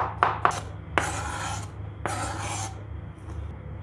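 Chopped vegetables slide off a board into a bowl with a rustling scrape.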